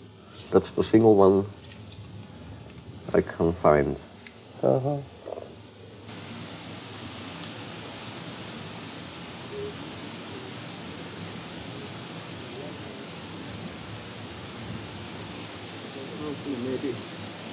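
An elderly man speaks in short phrases close by.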